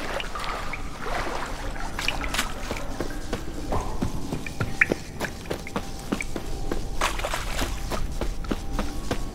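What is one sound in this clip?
Footsteps thud quickly over soft ground.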